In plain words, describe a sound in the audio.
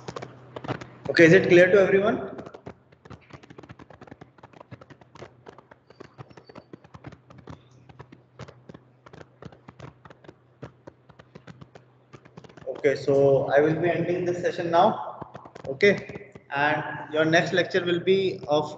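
A man speaks calmly, heard through a microphone on an online call.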